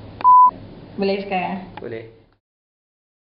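An elderly woman speaks with animation close by.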